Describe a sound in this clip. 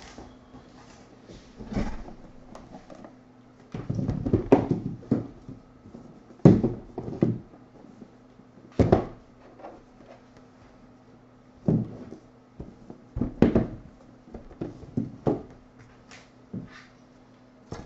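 Cardboard boxes knock and slide against each other as they are handled.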